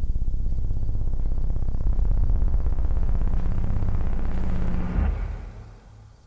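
A combine harvester engine rumbles loudly, then cuts off.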